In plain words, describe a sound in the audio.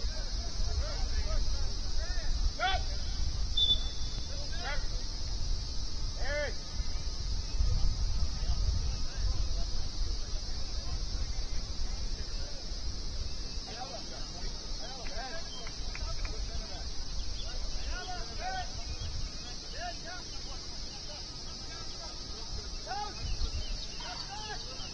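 Young men shout to each other in the distance, outdoors.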